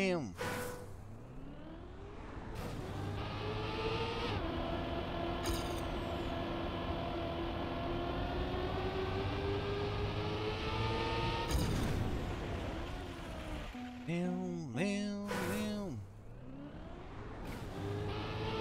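A racing car engine whines steadily, rising and falling in pitch as it speeds up and restarts.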